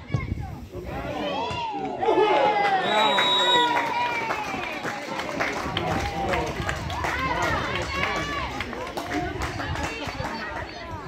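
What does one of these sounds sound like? Young women shout and cheer excitedly outdoors.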